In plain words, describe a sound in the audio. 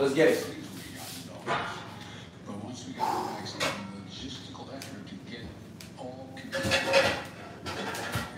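A man breathes heavily with effort, close by.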